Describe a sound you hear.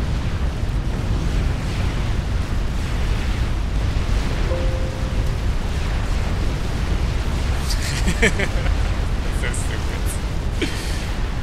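Heavy explosions boom and rumble in a constant deep roar.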